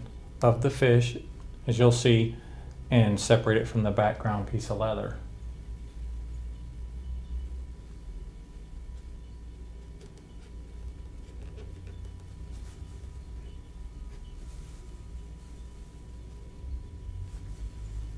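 A craft knife scrapes and cuts through leather.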